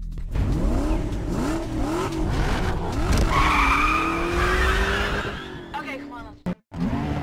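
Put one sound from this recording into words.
Car engines rev loudly.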